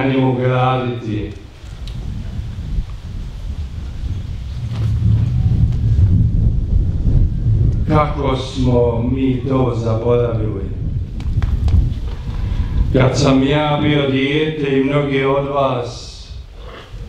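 An elderly man speaks calmly and slowly through a microphone and loudspeakers, outdoors.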